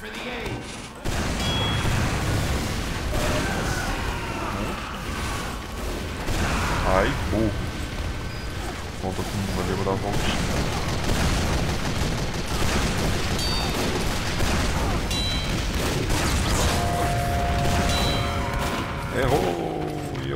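Rockets launch with sharp whooshes and explosions boom.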